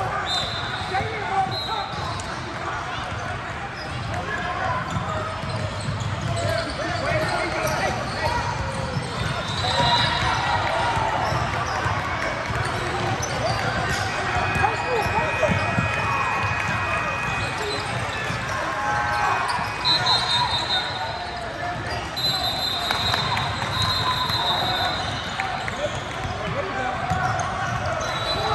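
Basketball shoes squeak sharply on a wooden floor.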